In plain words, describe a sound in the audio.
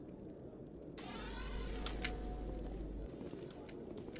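A fire extinguishing system bursts on with a loud, rushing hiss.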